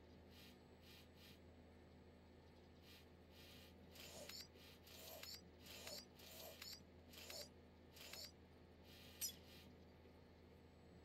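Soft menu beeps and clicks sound at an uneven pace.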